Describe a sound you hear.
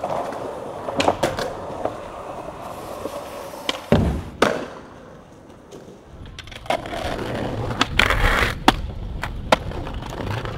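A skateboard clacks and snaps as it pops off the ground.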